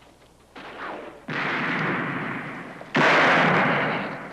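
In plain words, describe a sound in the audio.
Gunshots crack and echo outdoors.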